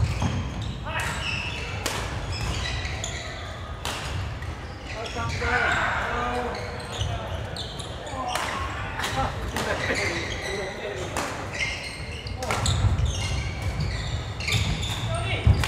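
Shuttlecocks are struck sharply by rackets again and again in a large echoing hall.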